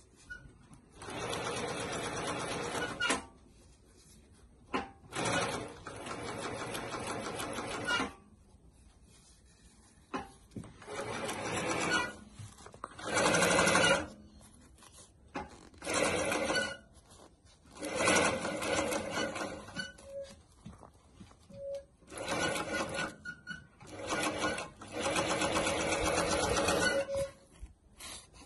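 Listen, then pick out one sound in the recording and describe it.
A sewing machine stitches in quick bursts, starting and stopping.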